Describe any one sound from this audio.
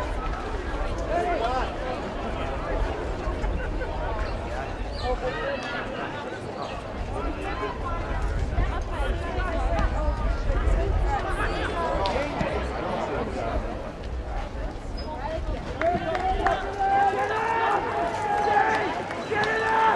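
A crowd of spectators shouts and cheers from the stands outdoors.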